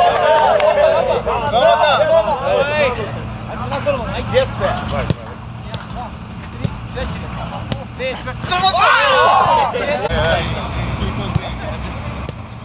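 Men talk and call out to each other outdoors at a distance.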